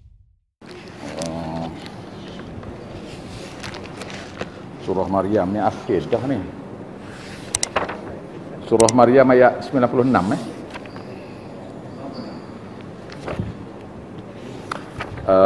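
An elderly man speaks calmly and slowly into a nearby microphone.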